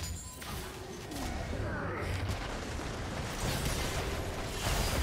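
Magic spell effects whoosh and crackle in a fast battle.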